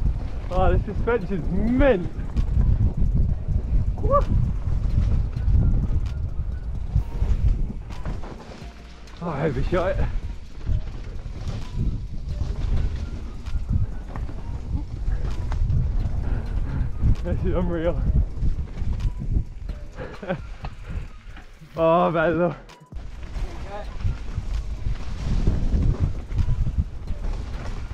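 A mountain bike rattles and rumbles over a rough dirt trail.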